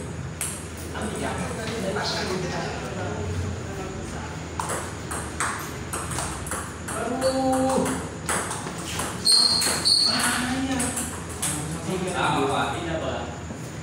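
Men talk and call out casually nearby.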